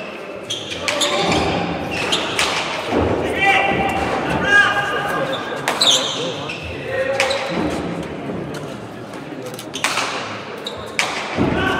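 A crowd murmurs and cheers in an echoing hall.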